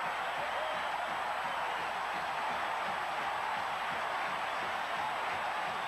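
Young men in a crowd shout and yell close by.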